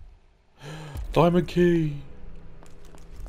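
A low musical chime rings out once.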